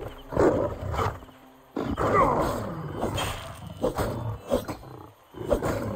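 A wild animal snarls and growls.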